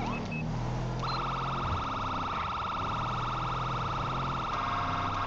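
A police siren switches to a steady, blaring tone.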